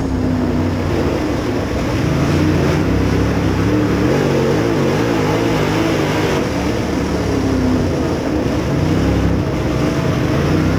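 A dirt late model race car's V8 engine roars at full throttle, heard from inside the car.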